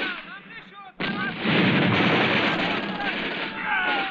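An explosion booms with a loud rumbling blast.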